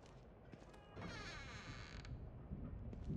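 A wooden door creaks as it is pushed open.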